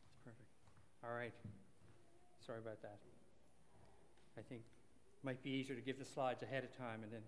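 A man speaks into a microphone in a large room, starting and pausing.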